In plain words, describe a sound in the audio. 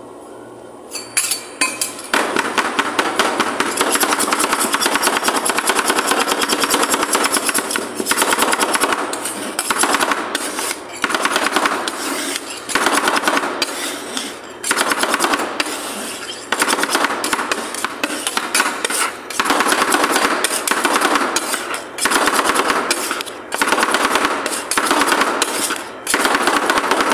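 Metal spatulas rapidly chop and scrape on a cold metal plate.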